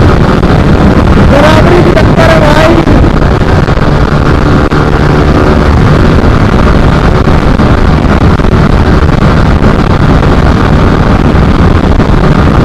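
A single-cylinder sport motorcycle engine runs at high speed.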